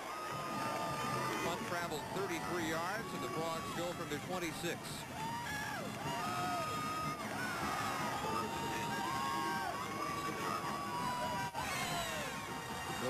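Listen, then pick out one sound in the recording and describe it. A marching band's brass horns play loudly.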